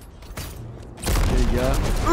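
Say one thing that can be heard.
A fiery explosion bursts with a deep roar.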